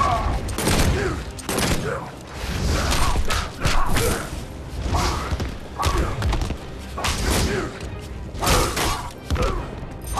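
Fighters grunt and shout as they strike.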